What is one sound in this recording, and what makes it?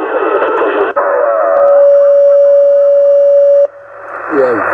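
A radio gives out a steady, loud whistling tone.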